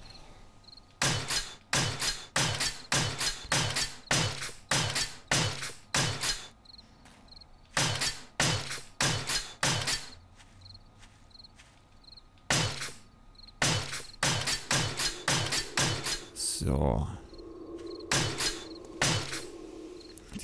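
A tool strikes hard blocks again and again with sharp knocks.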